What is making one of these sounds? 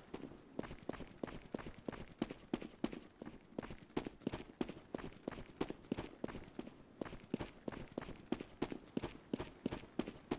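Footsteps tap quickly and steadily across a hard floor.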